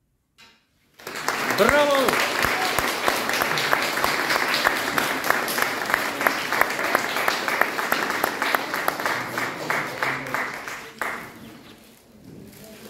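A classical guitar is played quickly with rapid plucked notes.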